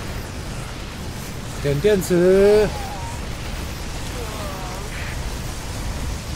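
Laser weapons zap and small explosions crackle in a busy battle.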